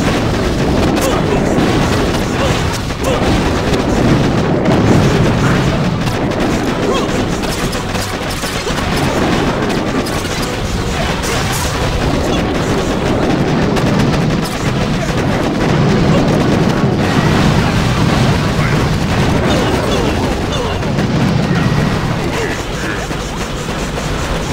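Explosions boom and crackle repeatedly.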